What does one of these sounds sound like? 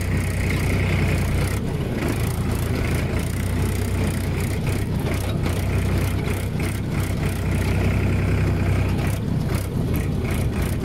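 A tractor engine rumbles steadily up close.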